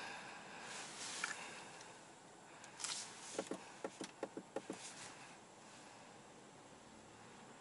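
Tyres hum over a road, heard from inside a car.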